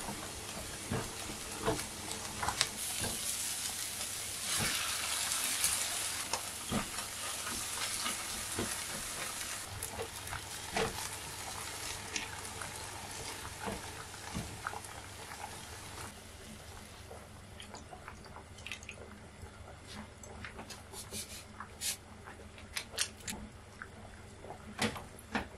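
A spatula scrapes and taps against a pan.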